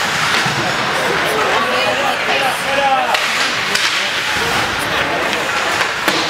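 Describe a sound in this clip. Ice hockey skates scrape and carve across the ice.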